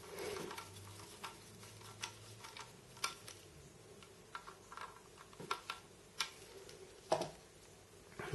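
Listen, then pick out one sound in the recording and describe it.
A plastic drive case taps and knocks lightly as hands handle it.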